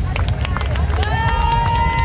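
A woman close by claps her hands.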